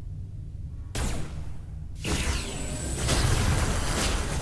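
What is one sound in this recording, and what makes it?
Gunshots fire in a rapid exchange.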